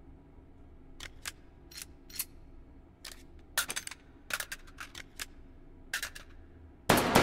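Metal clicks and clacks as a pistol is handled and loaded.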